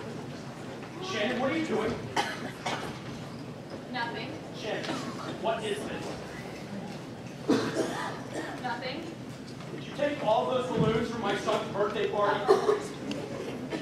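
A man speaks with animation on a stage in a large echoing hall.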